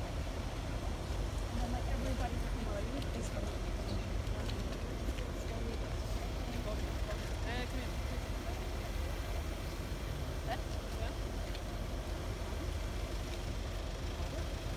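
A crowd of men and women chatters close by outdoors.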